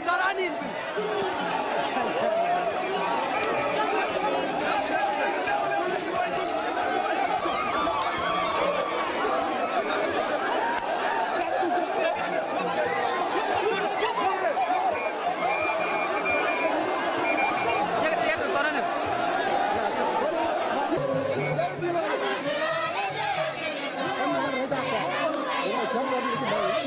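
A large crowd outdoors chants and sings loudly together.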